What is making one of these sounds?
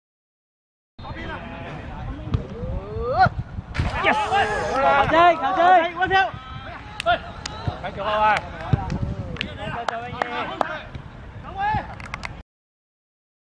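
Young men shout and cheer outdoors at a distance.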